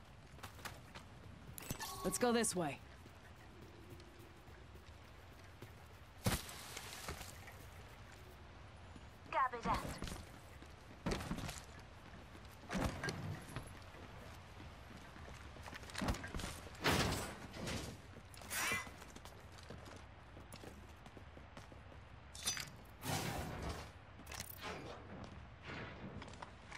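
Footsteps thud quickly on wood and dirt.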